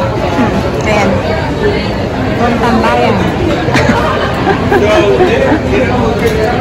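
A young woman speaks close by, in a cheerful voice.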